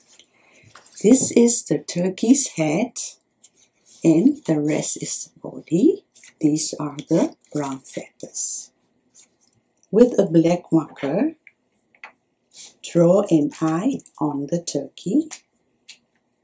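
A woman speaks calmly and clearly, close by.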